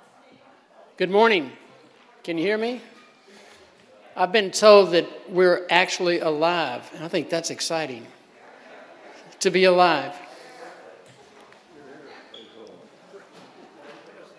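An elderly man speaks into a microphone over a loudspeaker, calmly addressing a room.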